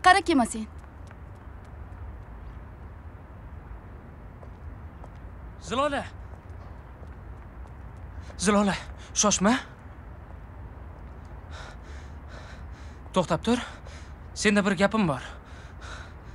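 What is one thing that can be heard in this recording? A young woman speaks calmly in short phrases, close by.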